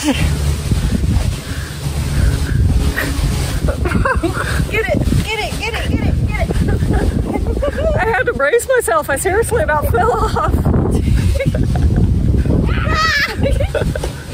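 A young woman laughs nearby.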